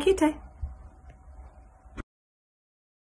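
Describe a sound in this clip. A woman speaks briefly and softly, close to a microphone.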